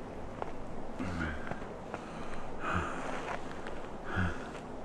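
A man groans and breathes heavily, close by.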